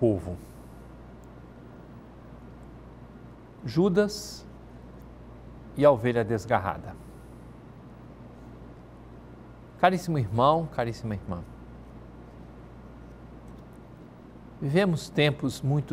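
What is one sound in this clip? A middle-aged man speaks calmly and slowly into a close microphone, with long pauses.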